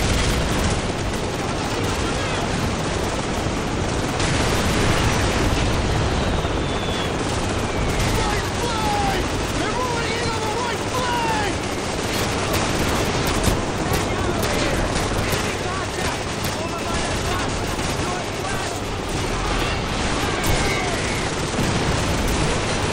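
A tank engine rumbles close by.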